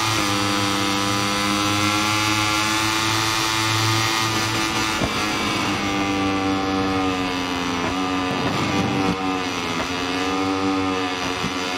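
A racing motorcycle engine screams at high revs, dropping in pitch as it slows for a corner.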